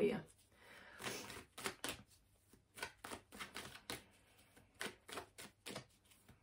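A plastic wrapper crinkles in a hand.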